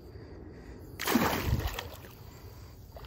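A fish splashes into shallow water.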